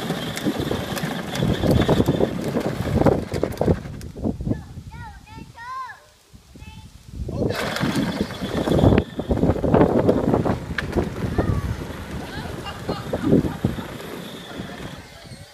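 Plastic wheels of a ride-on electric toy truck roll and rumble over asphalt.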